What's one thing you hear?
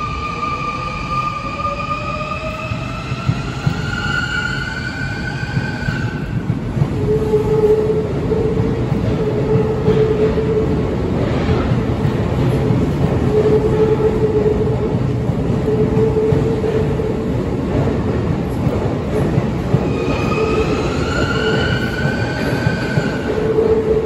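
An electric train rumbles along the rails, close by.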